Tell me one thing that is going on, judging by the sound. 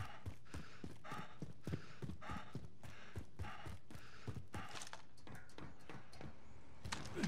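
Heavy footsteps thud quickly along a hard floor.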